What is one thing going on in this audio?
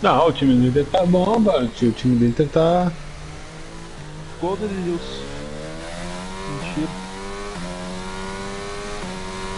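A racing car engine whines and revs, shifting through gears.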